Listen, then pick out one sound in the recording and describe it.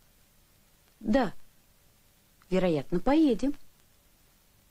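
A boy answers briefly.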